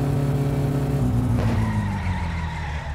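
A car engine drops in pitch as it shifts gear.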